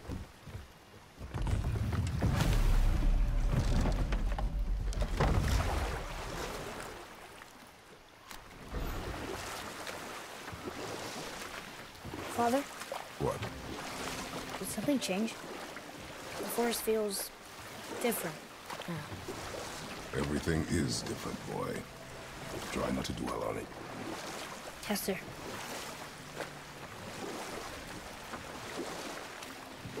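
A river rushes and splashes steadily.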